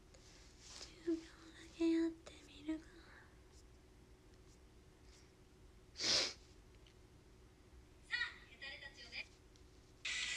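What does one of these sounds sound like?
A young woman speaks softly and briefly, close by.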